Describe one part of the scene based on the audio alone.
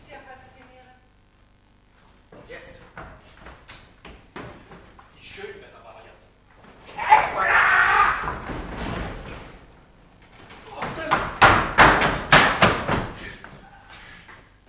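A man speaks with animation on an echoing stage.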